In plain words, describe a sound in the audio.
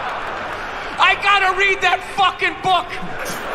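A man speaks animatedly through a microphone.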